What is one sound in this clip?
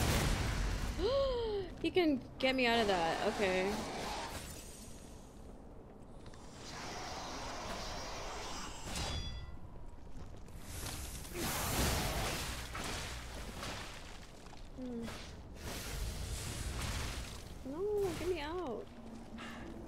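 A young woman talks close to a microphone.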